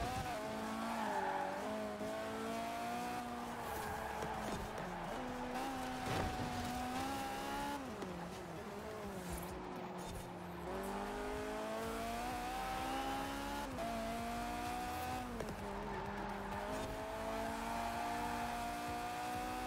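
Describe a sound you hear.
Tyres screech as a car drifts through bends.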